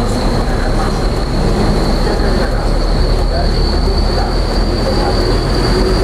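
A truck engine rumbles close ahead on a road.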